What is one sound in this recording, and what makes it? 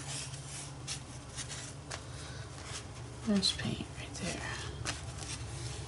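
A brush dabs paint onto paper.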